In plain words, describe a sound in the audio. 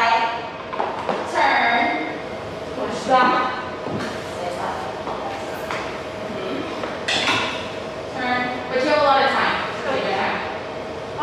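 High heels knock against a hard floor.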